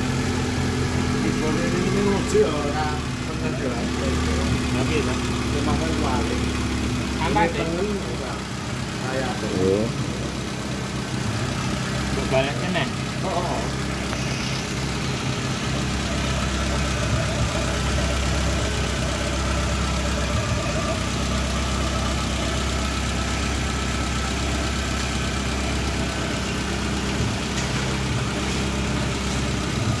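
A car engine idles steadily and close by.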